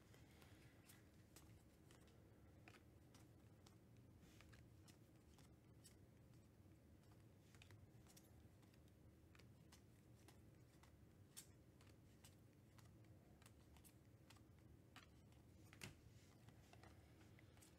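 Trading cards shuffle and slide against each other with soft flicks.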